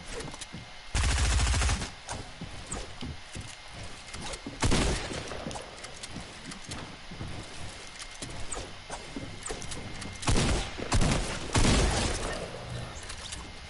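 Gunshots bang in loud bursts.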